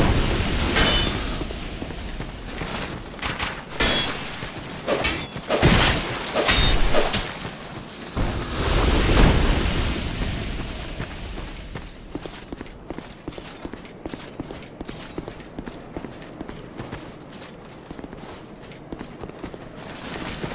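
Armoured footsteps crunch over dry leaves.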